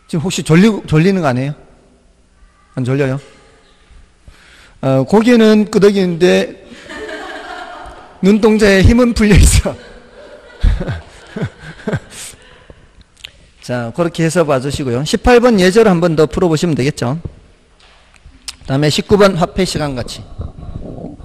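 A man speaks into a microphone in a lively manner, with pauses.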